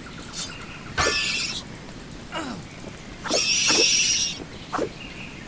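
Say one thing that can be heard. A sword slashes with a sharp swoosh.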